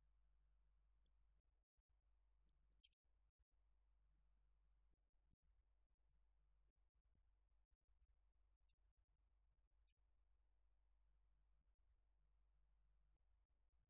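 A woman speaks calmly and steadily into a microphone.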